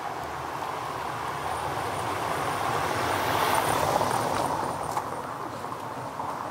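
A car rolls past on cobblestones, swelling and fading.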